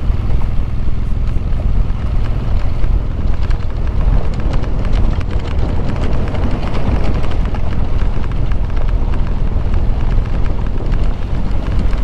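Tyres crunch and rattle over a stony dirt track.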